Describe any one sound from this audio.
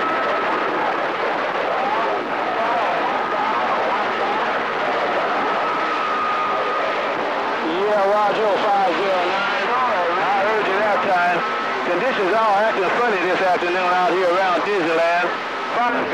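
A radio receiver hisses with loud static.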